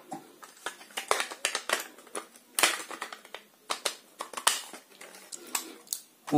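A plastic cap clicks as it is twisted onto a holder.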